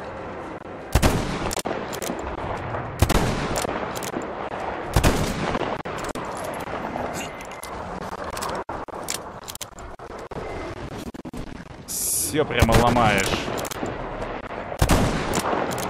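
A gun fires loud, sharp shots that echo outdoors.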